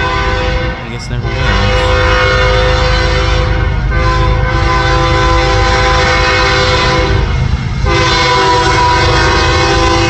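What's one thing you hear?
A diesel freight locomotive rumbles as it approaches.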